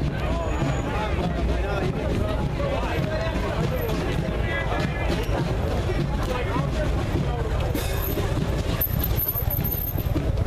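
Men chatter nearby outdoors.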